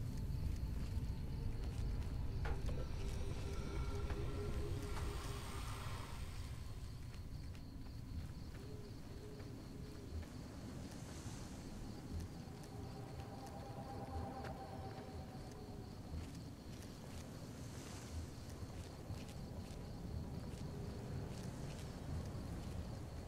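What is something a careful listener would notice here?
Footsteps crunch softly on dirt and gravel.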